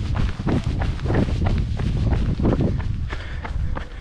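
Footsteps thud on pavement.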